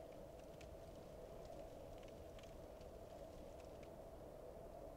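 Footsteps crunch on the ground.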